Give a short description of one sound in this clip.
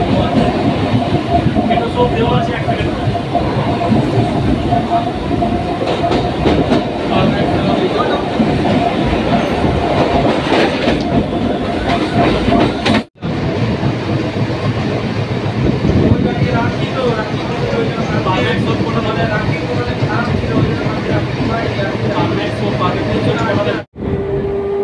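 Wind rushes past an open train door.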